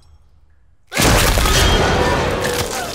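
A young woman gasps and speaks urgently.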